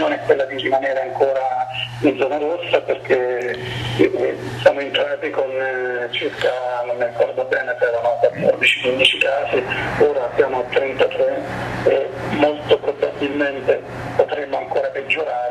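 A middle-aged man speaks calmly and steadily into a microphone, close by.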